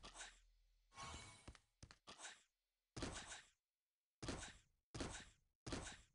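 A game character lands from jumps with short thuds at a steady pace.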